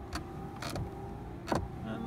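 Windscreen wipers sweep across the glass.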